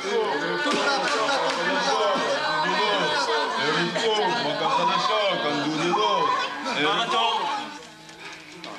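Men sing loudly together.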